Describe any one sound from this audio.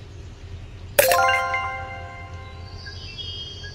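A bright game chime rings out and slowly fades.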